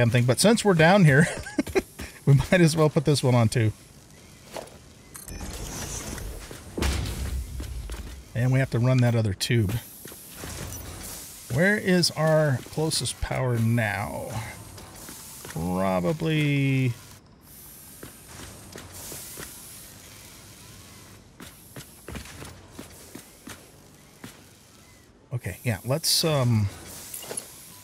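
A middle-aged man talks casually into a close microphone, in bursts with pauses.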